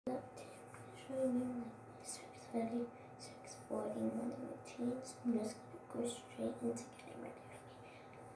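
A young girl talks calmly close by.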